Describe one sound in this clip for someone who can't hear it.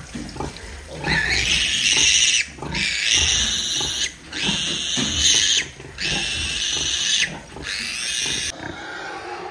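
Piglets squeal shrilly.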